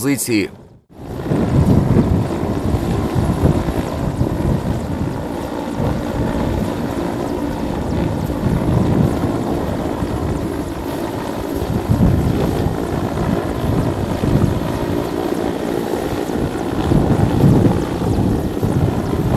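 A helicopter's rotor thuds and roars overhead.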